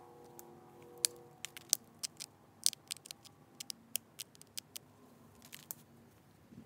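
Small stone flakes snap off with sharp clicks as a tool presses against a stone edge.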